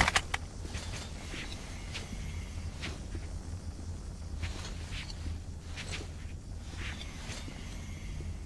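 Footsteps and clothing shuffle softly over a hard floor.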